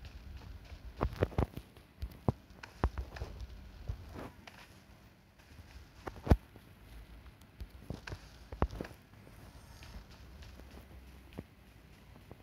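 Footsteps thud and scrape quickly on hard ground.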